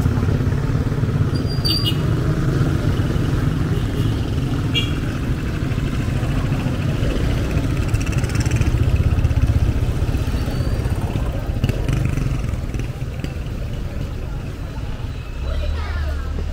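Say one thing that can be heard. A motor tricycle engine rumbles steadily close by.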